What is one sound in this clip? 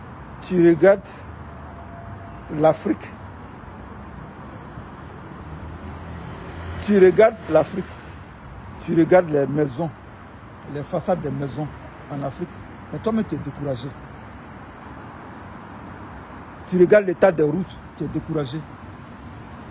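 A middle-aged man talks close to a phone microphone in bursts, with pauses.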